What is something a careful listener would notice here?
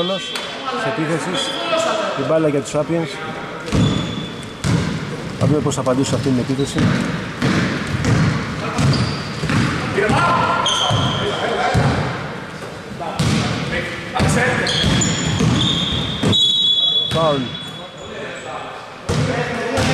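Men shout to each other across an echoing gym.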